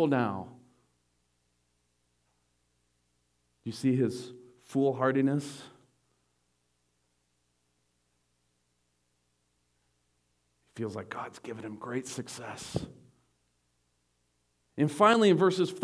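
A man preaches through a microphone, pausing between phrases.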